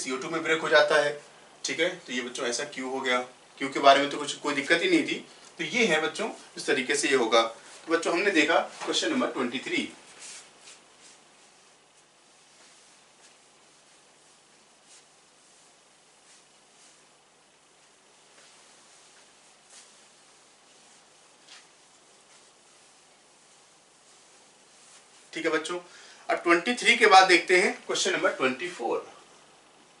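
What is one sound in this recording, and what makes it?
A man lectures clearly and with energy into a close microphone.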